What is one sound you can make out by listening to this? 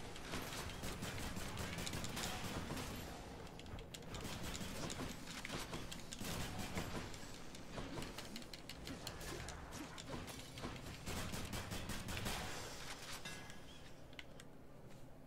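Rapid blasts and crackling bursts of video game combat effects fill the air.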